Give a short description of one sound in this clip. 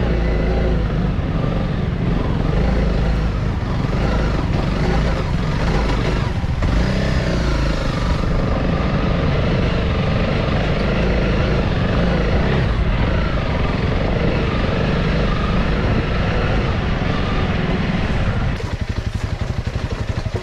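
A motorbike engine rumbles and revs close by.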